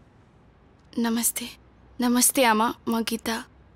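A young woman speaks, close by.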